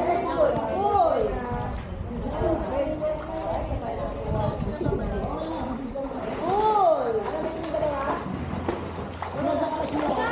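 Water splashes as swimmers move through a pool.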